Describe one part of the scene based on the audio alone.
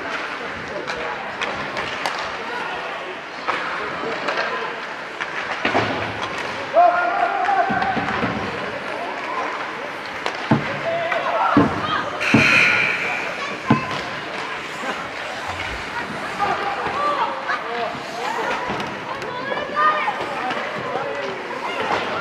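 Skates scrape and hiss across ice in an echoing rink.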